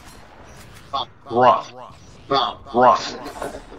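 A man talks with animation into a headset microphone.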